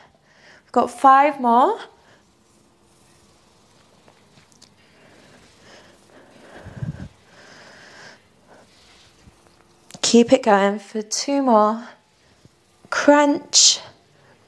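A young woman speaks calmly and clearly, close by, in short phrases.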